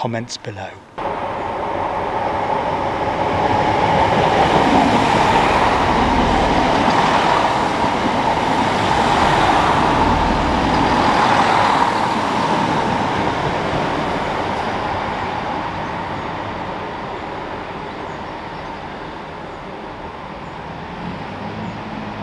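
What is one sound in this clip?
A train rumbles and squeals along the rails past a platform, then fades into the distance.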